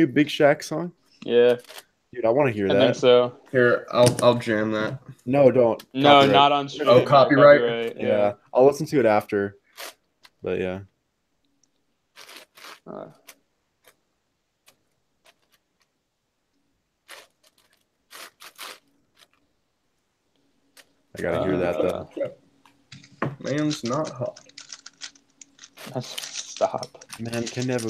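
A puzzle cube clicks and clacks as it is twisted quickly.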